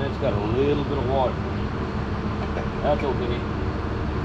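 A man talks briefly nearby.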